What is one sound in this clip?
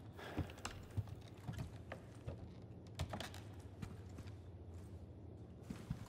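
Footsteps thud on creaking wooden planks.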